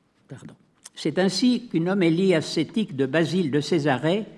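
An elderly man reads out into a microphone.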